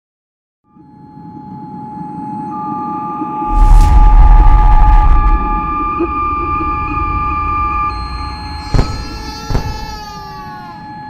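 Electronic music with steady synthesizer tones and a deep bass plays through speakers.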